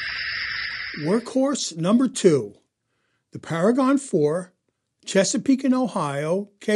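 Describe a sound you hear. A model steam locomotive whistle blows in several short bursts.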